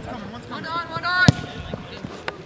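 A soccer ball is kicked with a thud.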